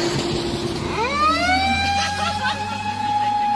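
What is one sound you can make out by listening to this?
A police siren wails, rising up.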